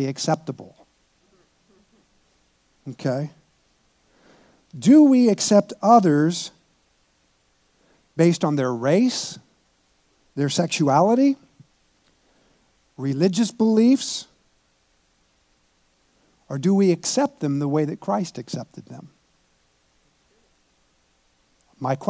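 An older man speaks calmly through a microphone in short phrases, with long pauses.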